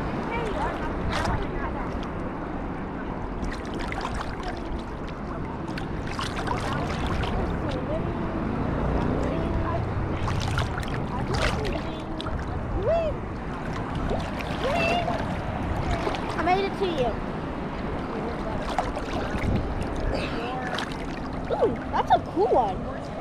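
Water sloshes and splashes close by, outdoors in the open.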